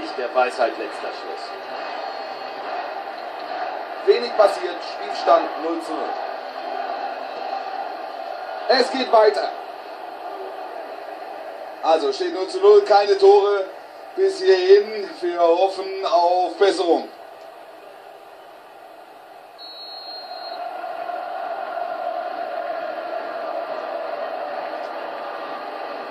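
A stadium crowd murmurs and roars steadily through a television speaker.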